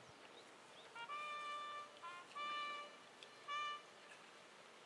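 A bugle plays short, steady notes in the distance.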